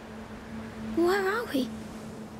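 A bird gives a short, warbling squawk.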